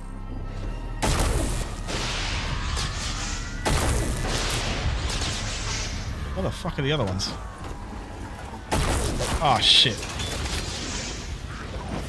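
A magic weapon fires with loud crackling blasts.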